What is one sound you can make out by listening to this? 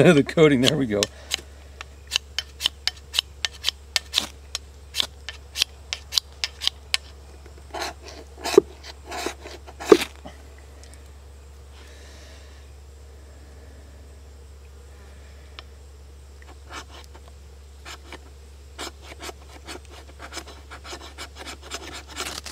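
A knife blade scrapes and shaves dry wood in short, quick strokes.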